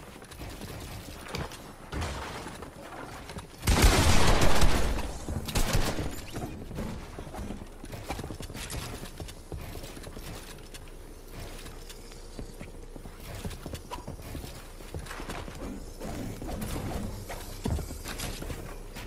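Wooden walls snap into place with quick knocks.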